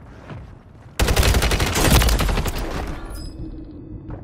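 A rifle fires a rapid burst of loud gunshots.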